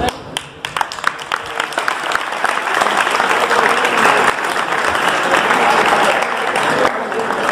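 A crowd of children chatters and cheers.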